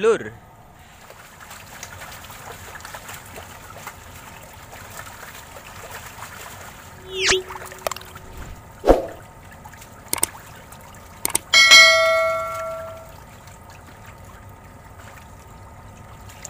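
Water splashes and churns as many fish thrash near the surface.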